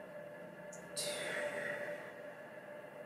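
A young woman exhales with a breathy sigh.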